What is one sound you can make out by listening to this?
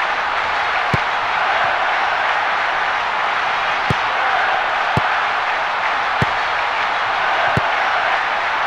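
A football is kicked with short, sharp thuds.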